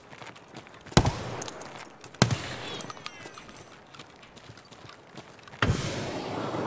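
A rifle fires single loud shots that ring out in an echoing space.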